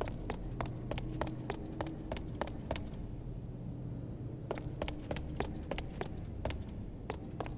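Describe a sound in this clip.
Quick footsteps run on a hard floor.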